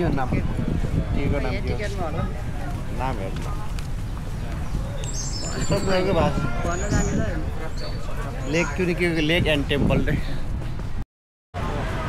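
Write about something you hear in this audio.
A young woman speaks close by.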